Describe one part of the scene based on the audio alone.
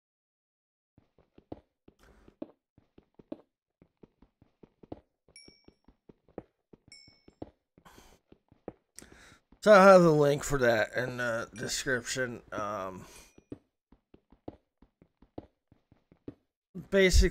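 A pickaxe taps repeatedly on stone.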